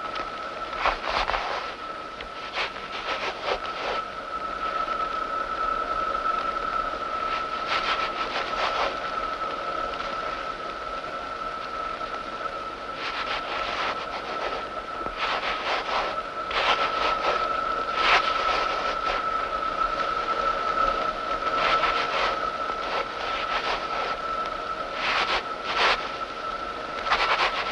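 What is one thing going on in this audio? A woman sings a long, mournful note.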